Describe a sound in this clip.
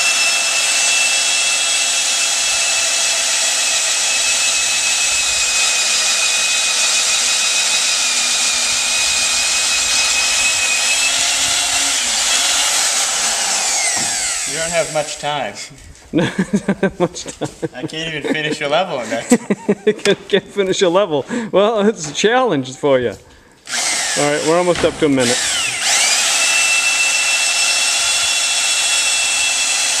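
An electric drill whines steadily, close by.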